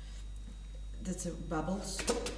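A young woman speaks calmly close to a microphone.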